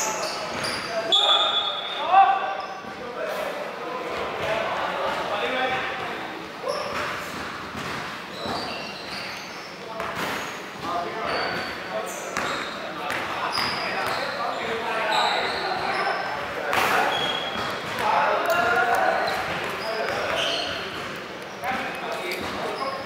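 Young men call out to one another across a large echoing gym.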